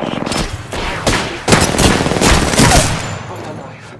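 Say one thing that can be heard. Gunfire from an automatic rifle rattles in bursts.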